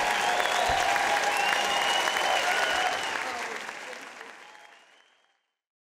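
A large crowd applauds, then the applause fades away.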